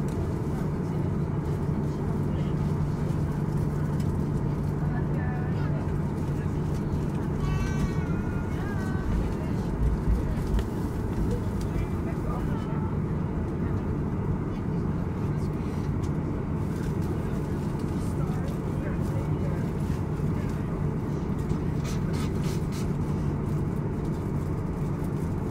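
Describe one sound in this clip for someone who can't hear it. Jet engines hum and rumble steadily, heard from inside an aircraft.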